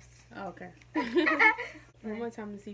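A young woman and a girl laugh together.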